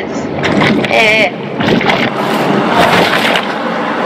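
Water splashes as a shark breaks the surface.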